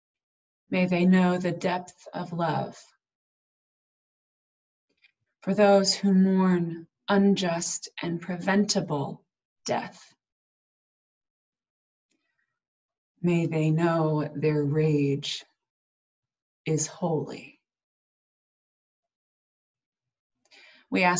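A young woman speaks calmly in pauses, heard through an online call.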